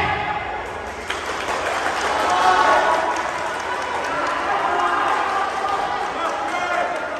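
A crowd of young spectators cheers and chatters.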